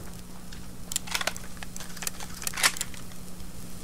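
A shotgun is broken open and reloaded with metallic clicks.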